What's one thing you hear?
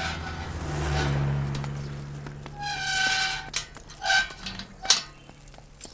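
A metal gate rattles and clanks as it is pushed.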